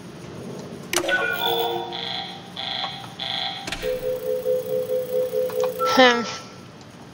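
An electronic control panel beeps in a quick series of tones.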